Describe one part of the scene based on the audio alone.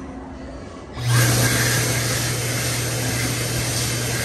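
A hand dryer blows with a loud, steady roar.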